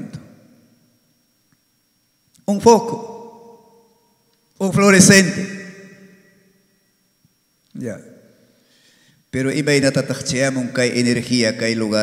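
A man speaks with emphasis into a microphone, in bursts with pauses, his voice echoing in a large room.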